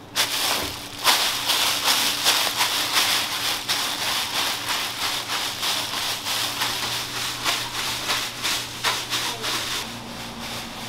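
Feet tread on dough wrapped in crinkling plastic.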